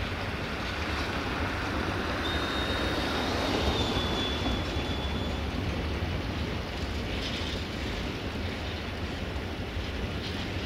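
A train rumbles along the tracks in the distance.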